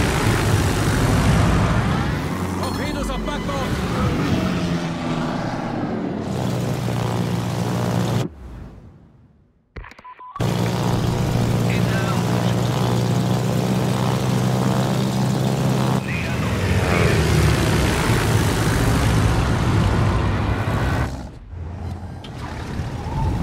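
Propeller aircraft engines drone steadily.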